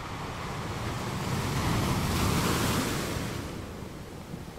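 Waves crash and break onto rocks.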